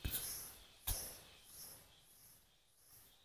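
Loose soil crumbles and rustles as a hand scoops it from a hole.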